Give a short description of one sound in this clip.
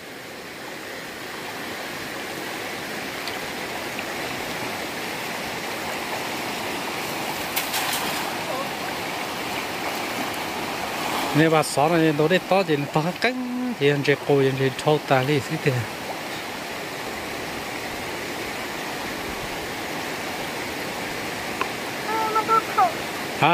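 Water splashes as a person wades through a stream.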